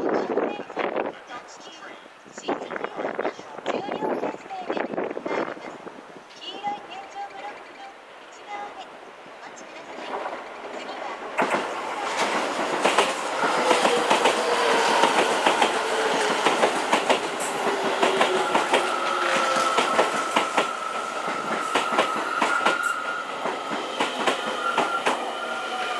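Train wheels rumble and clack over rail joints.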